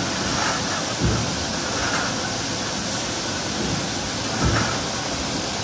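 A heavy press thumps as it strokes.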